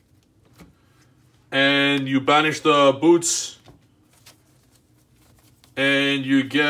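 Playing cards are shuffled and slide softly on a mat.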